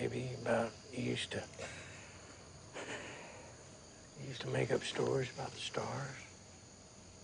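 A middle-aged man speaks quietly and earnestly, close by.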